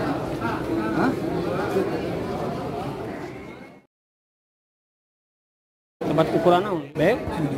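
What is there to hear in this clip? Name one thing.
A crowd of men talk loudly and busily close by.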